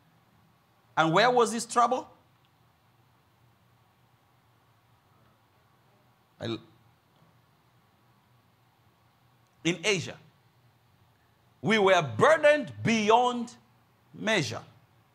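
A middle-aged man preaches into a microphone with emphasis, in short bursts between pauses.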